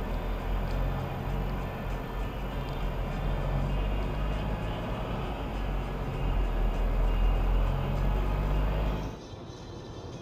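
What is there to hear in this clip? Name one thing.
A car engine hums steadily while driving on a road.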